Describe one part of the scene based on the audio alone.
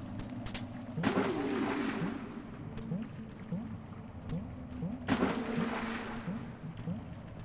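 Water splashes loudly and then settles.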